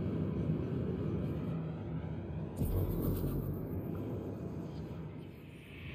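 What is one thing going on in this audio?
A spaceship engine hums with a low, steady drone.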